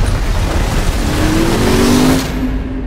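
A motorbike engine revs nearby.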